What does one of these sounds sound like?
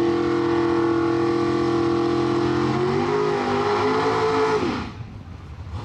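A race car engine roars loudly and revs.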